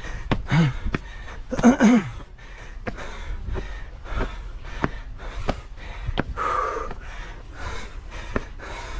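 Footsteps climb stone steps at a steady pace.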